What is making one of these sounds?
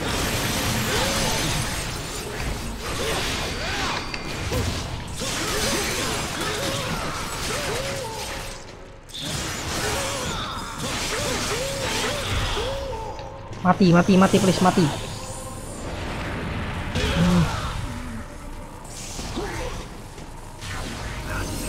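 A young man talks into a headset microphone with animation.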